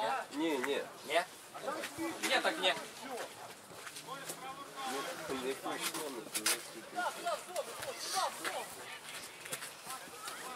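Young men shout and call to each other outdoors across a pitch.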